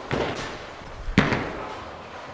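A bowling ball thuds onto a wooden lane.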